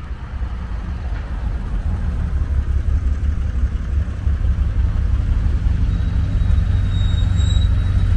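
A classic sports car passes close by.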